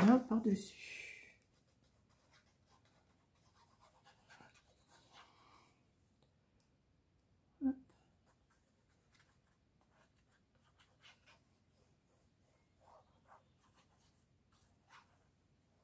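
A liquid glue pen dabs on paper.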